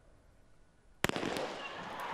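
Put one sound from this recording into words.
A starting pistol fires with a sharp crack.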